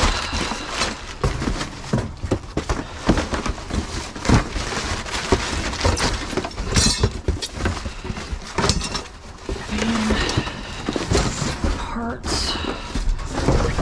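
Cardboard boxes rustle and scrape as hands rummage through them.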